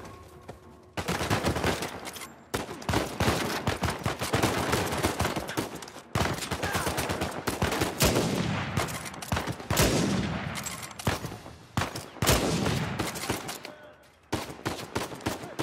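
Rifle shots crack rapidly, echoing loudly.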